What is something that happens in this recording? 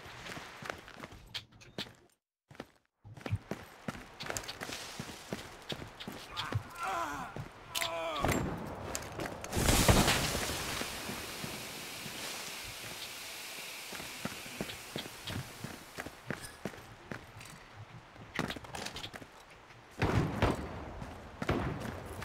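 Footsteps thud and scuff on hard ground.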